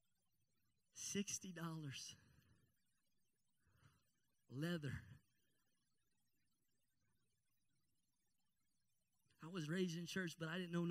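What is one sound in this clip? A man speaks with animation into a microphone, heard through loudspeakers, with long pauses.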